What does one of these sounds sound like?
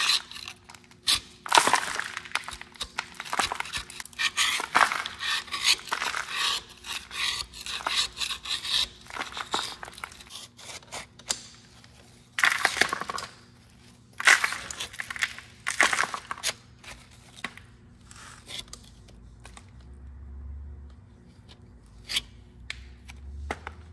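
A metal scraper scrapes and knocks crusted dirt off a metal housing.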